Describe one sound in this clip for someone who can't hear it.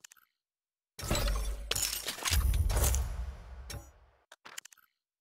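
A game's success fanfare swells and fades.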